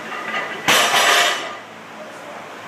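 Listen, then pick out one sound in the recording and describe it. A barbell crashes down onto the floor.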